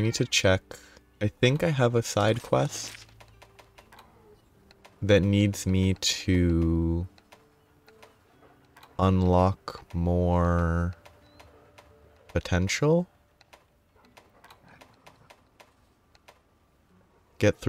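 Soft menu clicks tick as entries change.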